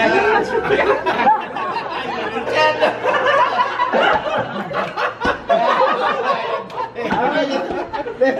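A group of young men laugh loudly together close by.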